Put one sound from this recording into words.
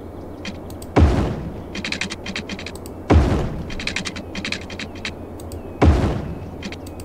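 A deep construction thud sounds several times.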